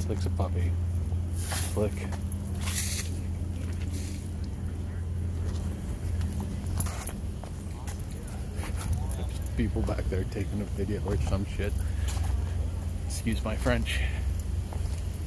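A middle-aged man talks casually, close to the microphone.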